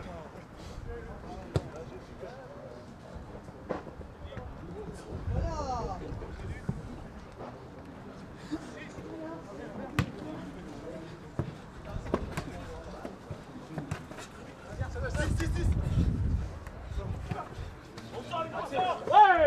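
Young players shout across an open field outdoors.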